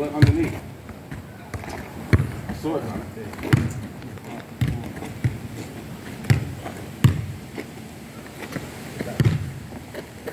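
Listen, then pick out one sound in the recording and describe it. A football thuds as it is kicked on a hard court outdoors.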